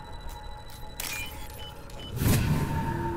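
Short electronic beeps chime in quick succession.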